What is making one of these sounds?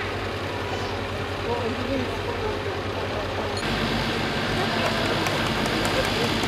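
A truck engine idles nearby with a low steady hum.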